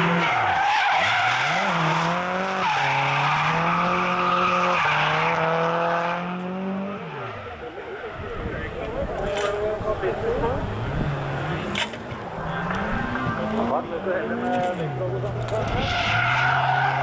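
A car engine roars and revs hard up and down.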